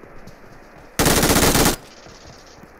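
Rapid gunfire rattles in short loud bursts.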